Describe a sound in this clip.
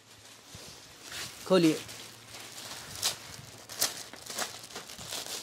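Plastic wrapping and fabric rustle and crinkle.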